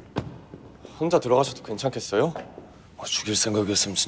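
A young man speaks sharply, close by.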